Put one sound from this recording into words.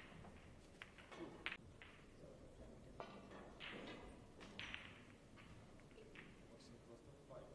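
A cue tip knocks a snooker ball with a sharp click.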